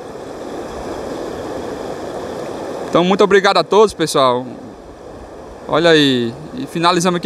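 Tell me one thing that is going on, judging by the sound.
Water rushes and gurgles steadily over a low weir outdoors.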